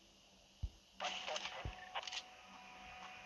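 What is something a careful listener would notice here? A rifle is lifted with a metallic clatter.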